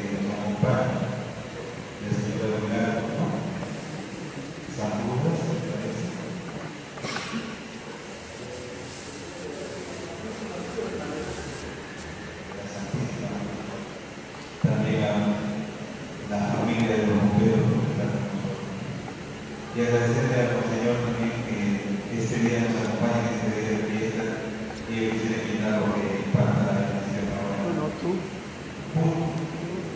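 A man speaks calmly into a microphone, heard through loudspeakers in an echoing room.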